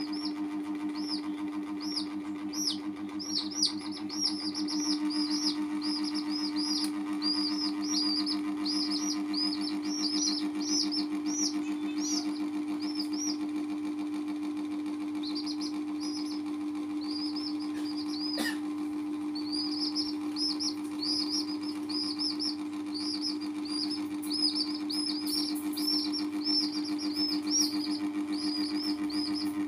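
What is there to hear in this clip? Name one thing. Chicks peep in high, rapid chirps.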